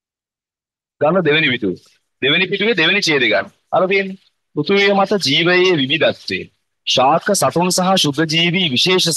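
A young man reads aloud steadily into a microphone.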